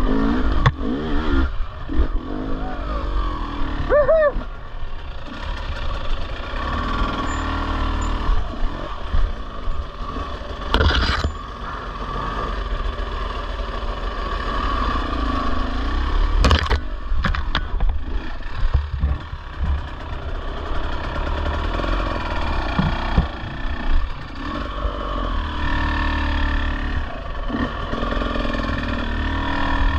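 A dirt bike engine revs and putters up close.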